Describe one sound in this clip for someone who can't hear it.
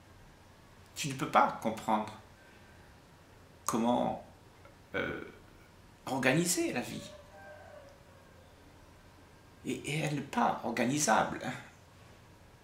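An elderly man speaks calmly and warmly, close by, in short bursts with pauses.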